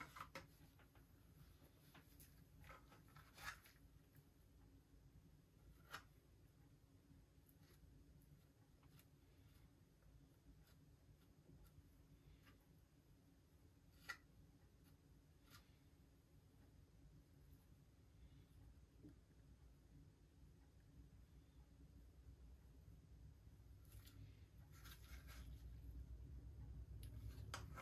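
A mixing stick scrapes and taps on a plastic palette as it stirs filler paste.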